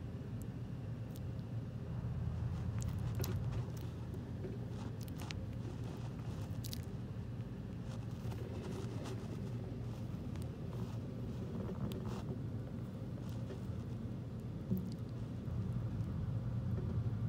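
A small lizard rustles faintly over loose bedding.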